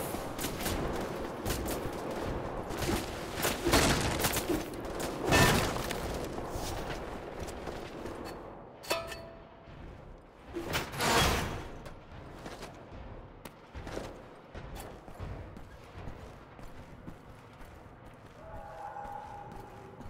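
Footsteps thud on a hard floor, echoing in a narrow space.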